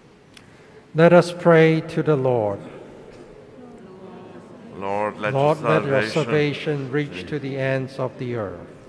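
A man chants through a microphone in a large, echoing hall.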